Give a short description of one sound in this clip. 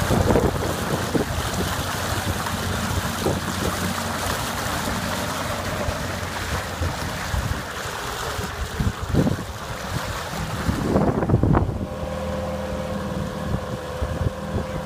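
An outboard motor hums steadily.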